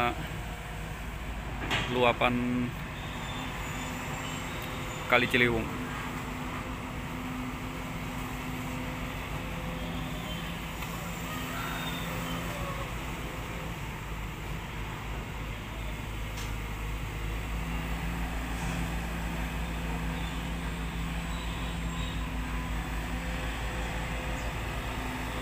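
A diesel engine of an excavator rumbles steadily close by.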